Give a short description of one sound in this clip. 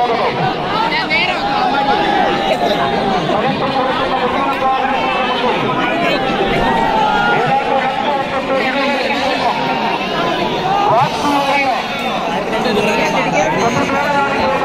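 Men in a crowd whistle sharply.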